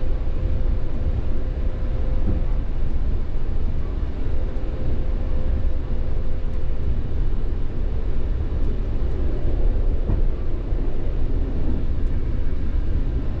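A vehicle rumbles steadily along, heard from inside with a low droning hum.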